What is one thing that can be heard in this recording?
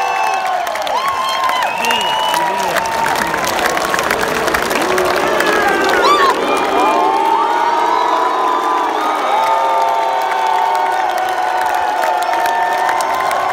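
A large crowd cheers and whistles loudly outdoors.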